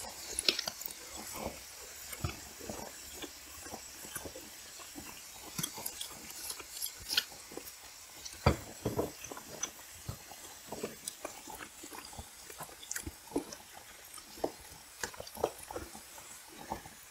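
A woman eats with loud smacking and chewing sounds close to a microphone.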